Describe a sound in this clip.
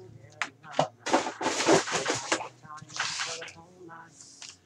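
Foil card packs crinkle and rustle.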